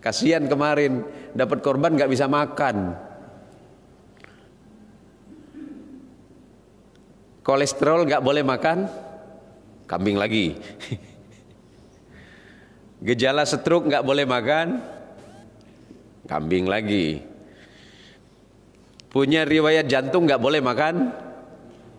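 A man speaks into a microphone with animation, in short bursts with pauses.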